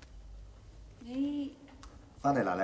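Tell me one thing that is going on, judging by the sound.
A young woman speaks hesitantly.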